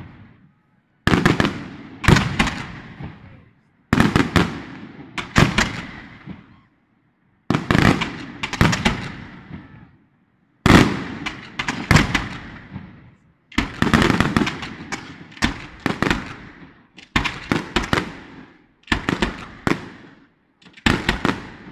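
Fireworks burst with loud booms and crackles, echoing outdoors.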